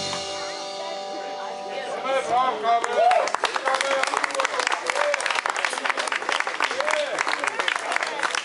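A band plays loud live music outdoors.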